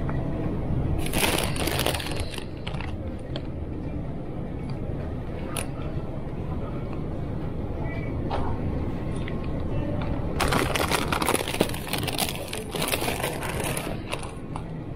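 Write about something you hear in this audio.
A plastic snack bag crinkles in a hand.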